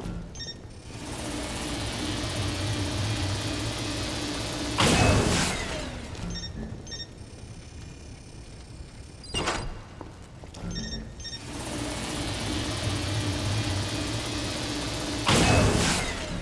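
Steam hisses steadily from vents.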